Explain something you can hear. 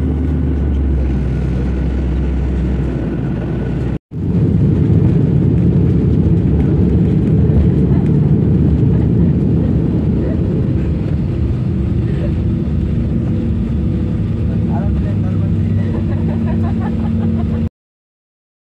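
Jet engines roar loudly and steadily.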